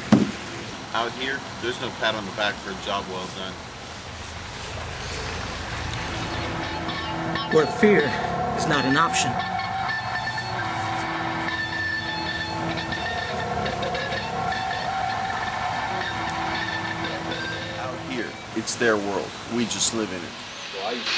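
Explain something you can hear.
A man speaks close by in a steady voice.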